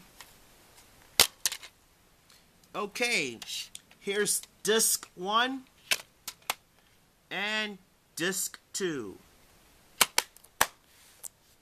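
A plastic disc case clicks and rattles as it is handled.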